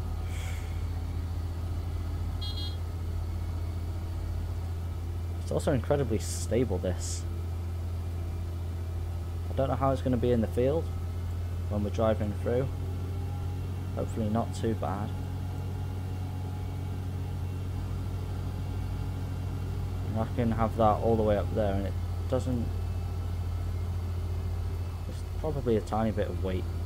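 A tractor engine drones steadily at low pitch.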